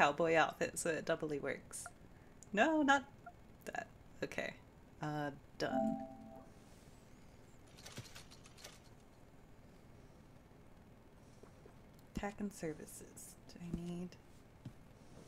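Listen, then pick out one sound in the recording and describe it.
A young woman talks casually and with animation into a close microphone.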